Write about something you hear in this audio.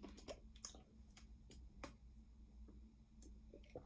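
A young boy gulps a drink from a bottle.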